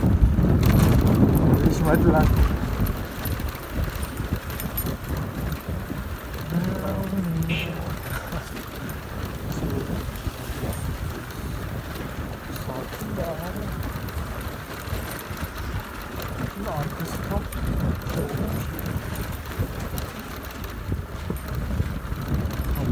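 A motorcycle engine hums steadily close by while riding.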